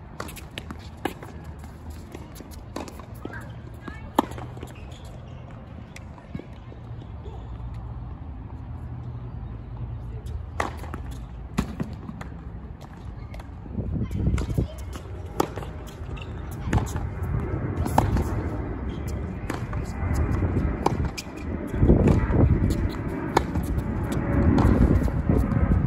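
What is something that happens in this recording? Tennis balls are struck with rackets in a steady rally.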